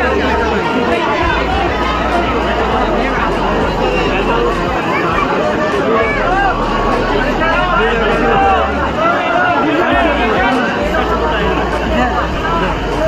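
A large crowd talks and murmurs close by in an echoing hall.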